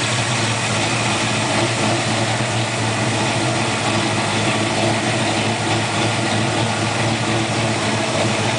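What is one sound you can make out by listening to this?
A big car engine idles with a deep, steady rumble close by.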